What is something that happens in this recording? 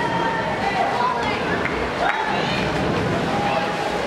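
A swimmer dives into the water with a splash.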